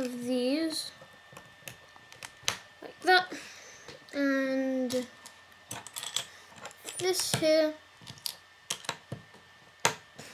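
Small plastic bricks click and snap together.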